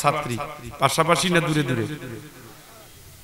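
An elderly man speaks loudly and with feeling into a microphone, heard through a loudspeaker.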